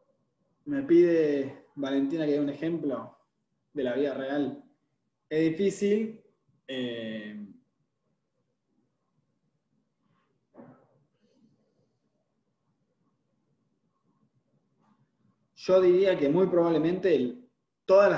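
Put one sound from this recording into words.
A young man speaks calmly through an online call, in short bursts with pauses.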